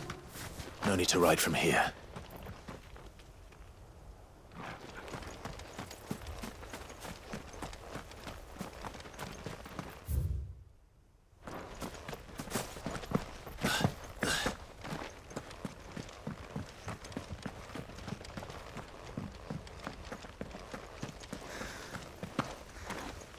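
Footsteps crunch steadily over dry dirt and grass.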